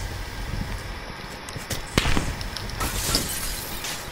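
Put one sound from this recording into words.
A window pane shatters.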